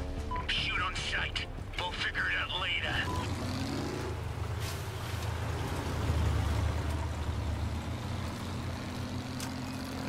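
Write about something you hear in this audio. A heavy vehicle engine rumbles and roars.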